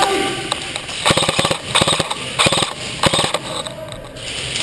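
Shots from an airsoft gun snap in quick bursts.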